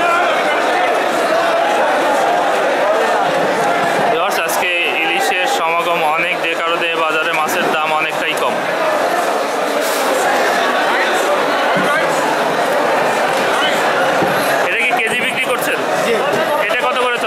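A crowd of men talks loudly all around.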